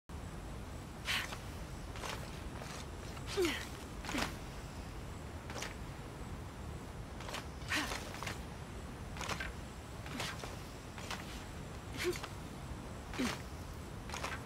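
Hands and boots scuff and thump against rock in short bursts.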